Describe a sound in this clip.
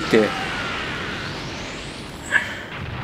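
A large energy blast explodes with a booming roar.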